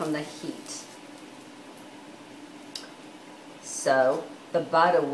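Water droplets sizzle and hiss in a hot pan.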